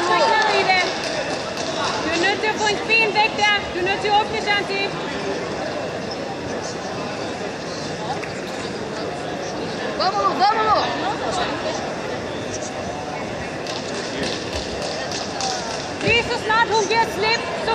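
Spectators shout encouragement in a large echoing hall.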